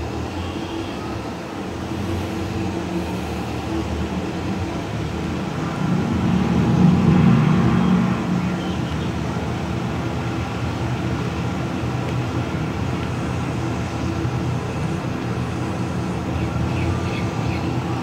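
A tractor engine rumbles steadily, swelling louder for a moment.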